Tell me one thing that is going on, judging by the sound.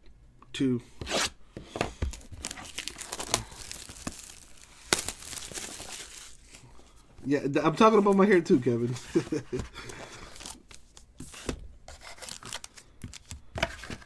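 Cardboard scrapes and taps as a card box is opened.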